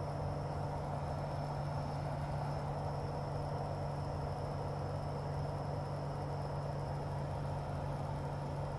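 Wind rushes past the cockpit canopy.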